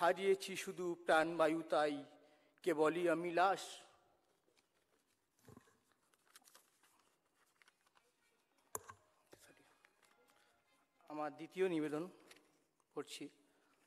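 A man reads aloud slowly through a microphone, with long pauses.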